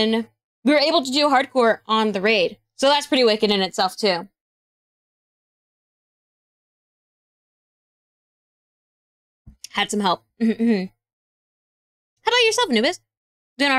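A young woman speaks animatedly into a close microphone, in bursts with pauses.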